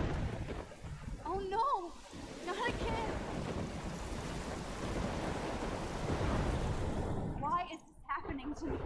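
A young woman speaks in a frightened, distressed voice.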